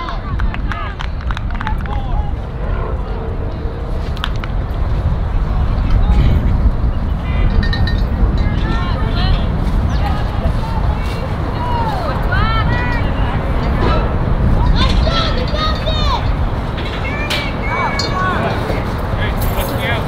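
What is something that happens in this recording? Young girls shout and call out across the field.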